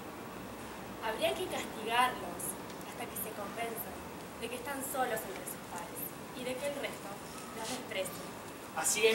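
A woman speaks clearly outdoors, as if performing.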